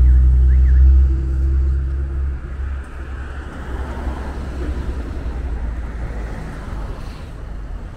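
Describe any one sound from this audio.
Traffic hums steadily on a city street.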